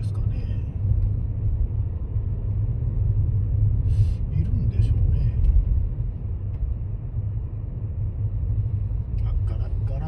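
A car's engine and tyres rumble low and steadily while driving along a road.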